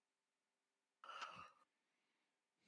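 A man speaks briefly and quietly into a headset microphone.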